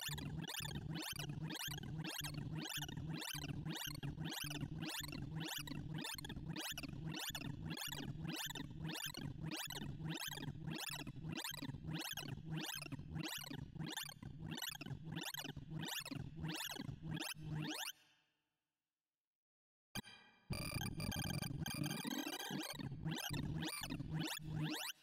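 Rapid electronic beeps sweep up and down in pitch in a fast, repeating pattern.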